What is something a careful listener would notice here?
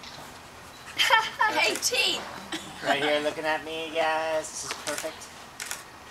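A young woman and a man laugh and chat close by.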